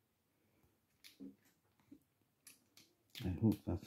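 A small plastic casing clicks softly as it is pried with a pin.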